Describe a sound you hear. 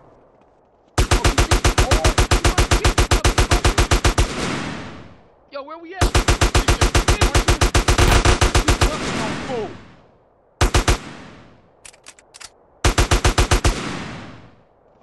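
A rifle fires rapid bursts of shots that echo.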